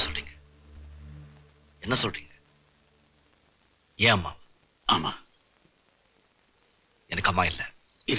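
A man speaks forcefully in short bursts, close by.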